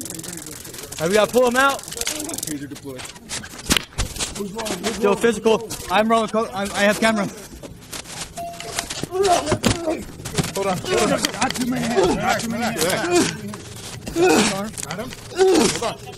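Men shout loudly and urgently close by.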